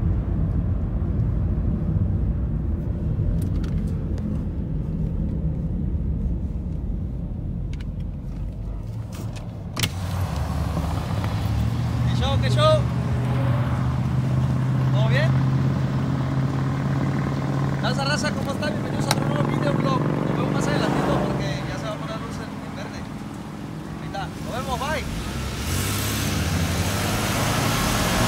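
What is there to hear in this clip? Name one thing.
Tyres roar on pavement as a car drives at speed, heard from inside the car.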